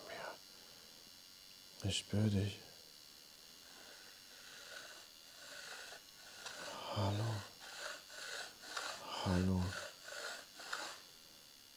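A wooden pointer slides and scrapes softly across a board.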